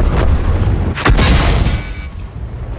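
A shell explodes with a heavy blast close by.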